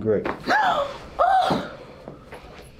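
A young woman cries out loudly and nearby.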